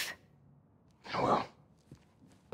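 A young man answers briefly and quietly up close.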